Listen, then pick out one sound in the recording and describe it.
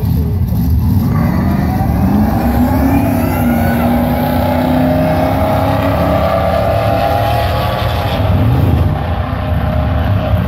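A supercharged V8 pickup launches and accelerates hard down a drag strip.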